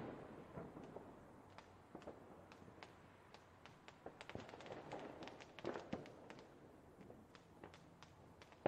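Fireworks crackle and pop in the distance.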